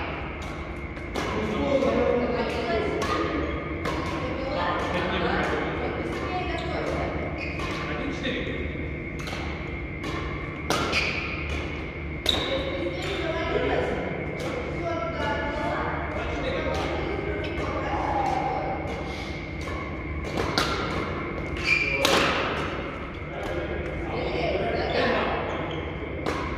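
Rackets strike a shuttlecock with sharp pops in a large echoing hall.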